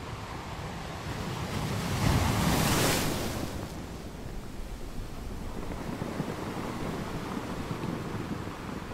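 Water washes and fizzes over rocks.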